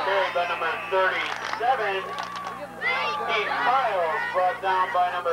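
A crowd of spectators cheers and shouts close by.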